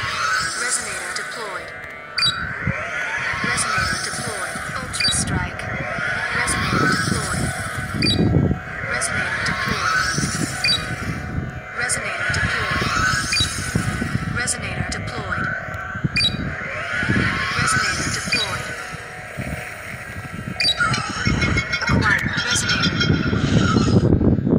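Game sound effects whoosh and chime repeatedly.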